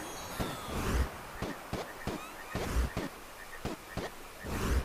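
Soft little footsteps patter quickly as a game character runs.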